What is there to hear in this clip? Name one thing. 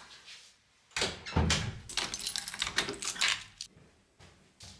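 Keys jingle and a key turns with a clicking rattle in a door lock.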